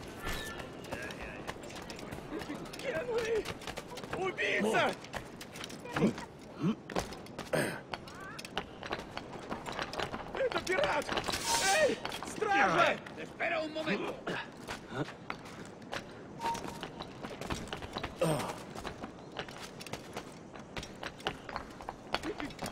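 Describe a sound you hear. Footsteps run quickly over stone and roof tiles.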